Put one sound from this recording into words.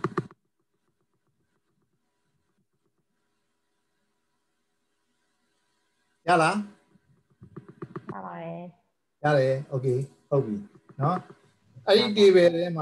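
A man talks calmly over an online call, in short bursts with pauses.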